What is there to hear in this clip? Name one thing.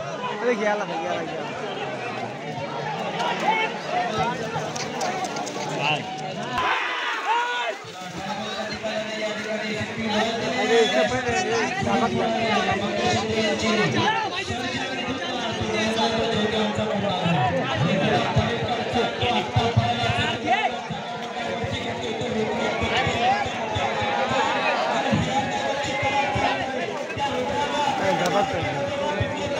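Men nearby shout with excitement.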